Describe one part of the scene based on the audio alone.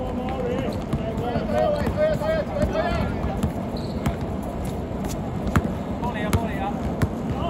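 A basketball bounces sharply on a hard outdoor court.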